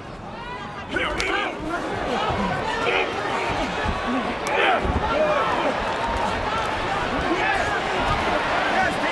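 Gloved punches thud against bodies.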